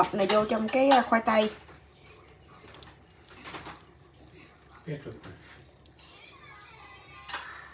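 Thick liquid batter pours and splashes softly into a dish.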